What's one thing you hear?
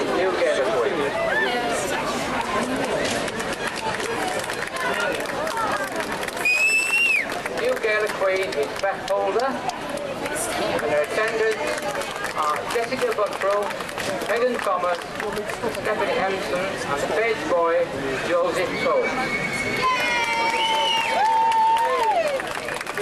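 A large outdoor crowd of men, women and children chatters steadily nearby.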